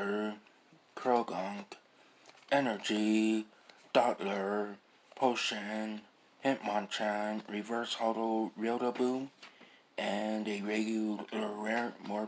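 Stiff playing cards rustle and slap softly as they are flipped by hand.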